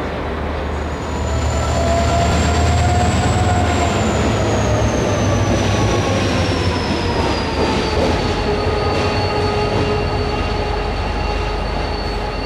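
A diesel locomotive engine roars loudly as it passes close by, its pitch falling as it moves away.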